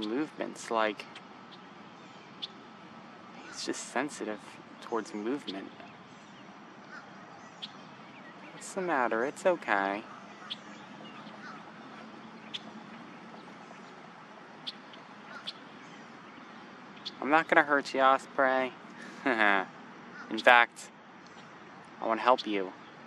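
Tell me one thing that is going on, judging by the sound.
An osprey calls out in shrill, whistling chirps in bursts.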